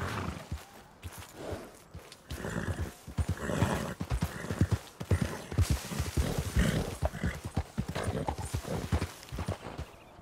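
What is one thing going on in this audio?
Grass and brush rustle as a horse pushes through.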